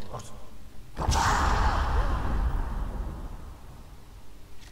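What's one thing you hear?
A ghostly spell bursts with a loud roaring whoosh that slowly fades.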